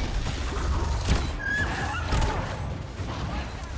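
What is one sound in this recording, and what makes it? A large beast growls and snarls.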